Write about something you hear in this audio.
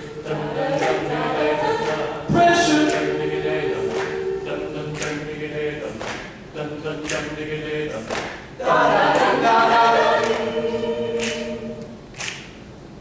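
A choir of young men and women sings in close harmony in an echoing hall.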